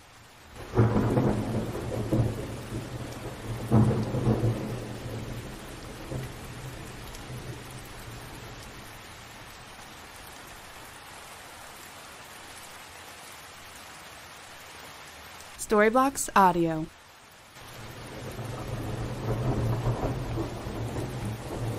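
Thunder rumbles and booms in the distance.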